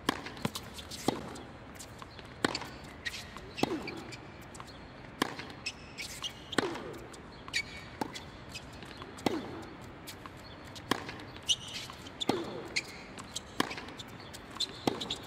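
Tennis balls are struck sharply back and forth in a steady rally.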